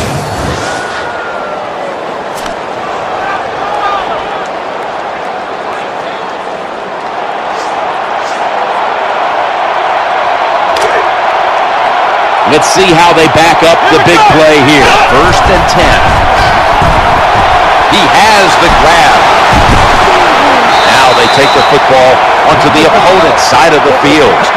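A large stadium crowd roars and cheers, growing louder.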